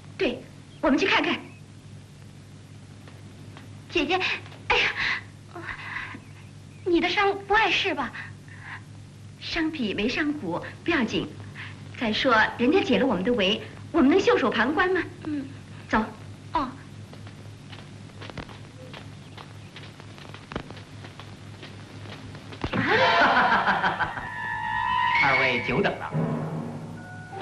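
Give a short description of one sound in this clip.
A second young woman replies softly, close by.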